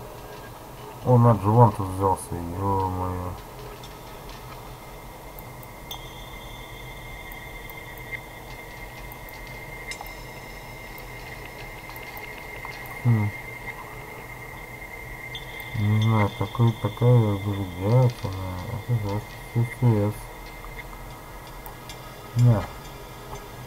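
An elderly man moans and mutters in a strange, warbling voice nearby.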